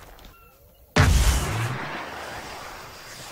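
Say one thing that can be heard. A cannon fires with a loud boom.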